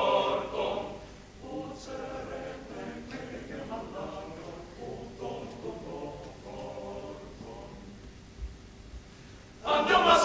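A male choir of grown men sings together.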